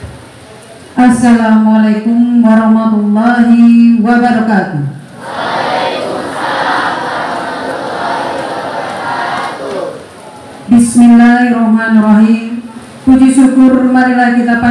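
A woman speaks calmly through a microphone over loudspeakers.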